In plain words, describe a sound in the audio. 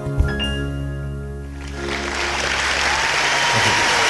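An acoustic guitar rings out a final chord.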